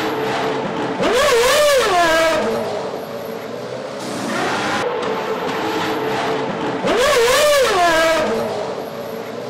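A racing car engine roars and revs.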